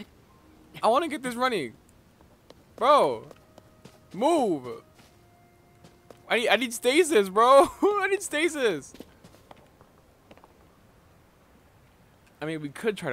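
A young man talks animatedly and close to a microphone, in short bursts.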